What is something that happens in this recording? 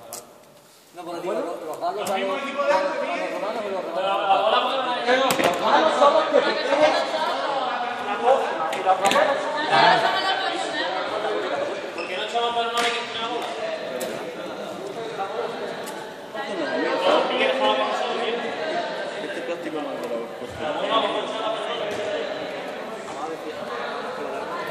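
Several young men and women chatter and call out in a large echoing hall.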